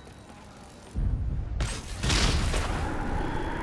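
A loud electric blast crackles and whooshes.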